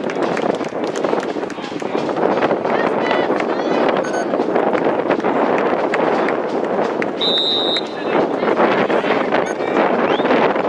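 A crowd of people chatters and calls out outdoors at a distance.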